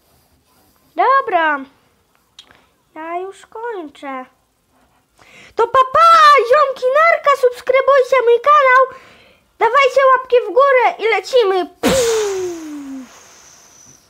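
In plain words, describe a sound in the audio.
A boy speaks with animation close to a microphone.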